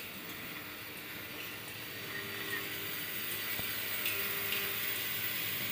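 A machine clicks now and then.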